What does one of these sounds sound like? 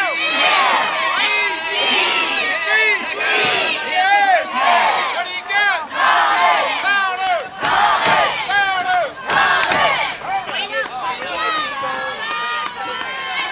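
A crowd of spectators shouts and cheers nearby, outdoors.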